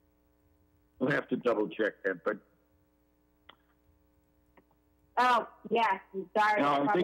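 A man speaks through an online call in short bursts.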